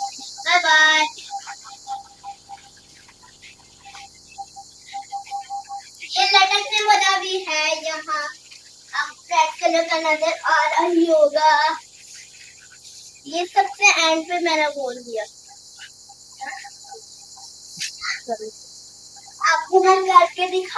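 A young boy talks excitedly, close by.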